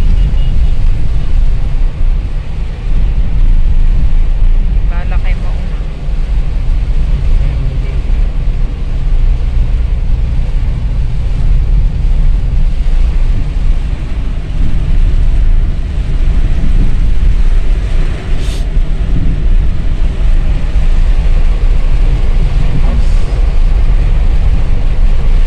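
Windscreen wipers swish across the glass.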